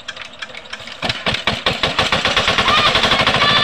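A small engine sputters and starts up.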